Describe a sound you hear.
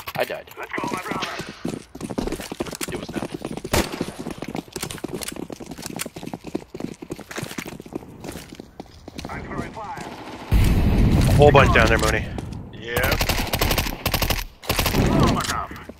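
Footsteps patter on stone.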